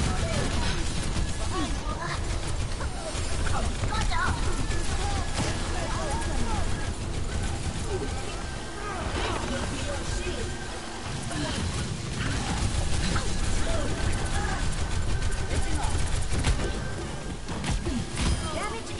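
Sci-fi weapons zap and buzz in rapid bursts.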